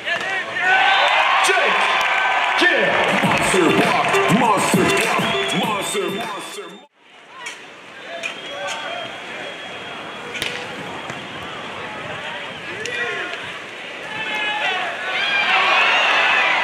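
Hands strike a beach volleyball with sharp slaps.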